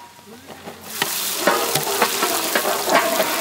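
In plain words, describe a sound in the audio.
Sliced onions pour into hot oil with a sudden, loud hiss.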